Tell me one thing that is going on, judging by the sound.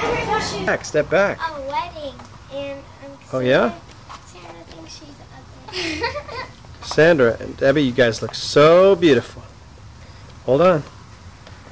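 Young girls sing a playful tune close by.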